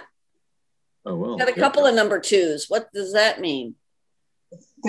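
An elderly man talks calmly through an online call.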